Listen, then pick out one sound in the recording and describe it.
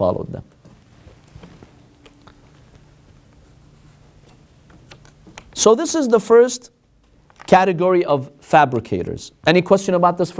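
A man reads aloud calmly through a microphone.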